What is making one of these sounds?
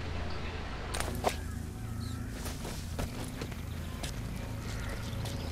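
Footsteps shuffle softly over gravel.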